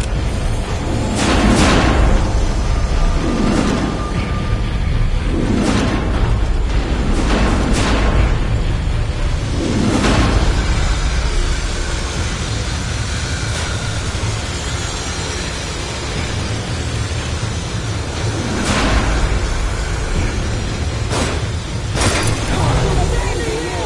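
Footsteps thud on a hard floor at a walking pace.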